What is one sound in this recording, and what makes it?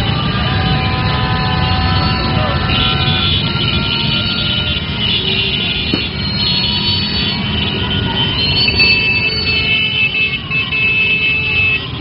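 Motorcycle engines rumble and putter steadily close by.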